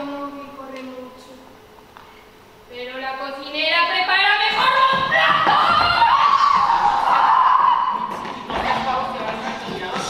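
Several actors speak and shout with animation from a distance.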